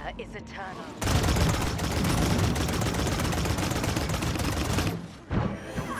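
An energy gun fires in a rapid, buzzing stream of shots.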